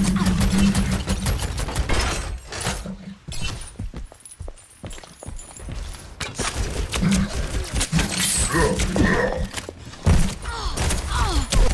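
A rapid-fire gun shoots in bursts.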